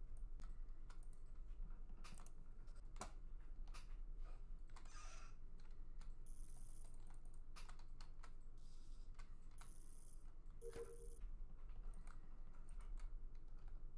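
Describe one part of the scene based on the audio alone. Footsteps tap quickly and lightly.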